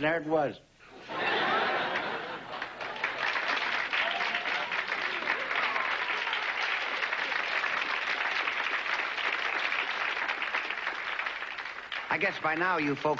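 A large crowd applauds and cheers in a big hall.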